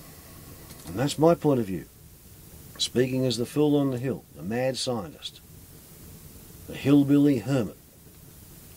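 An elderly man speaks calmly and close by in short bursts.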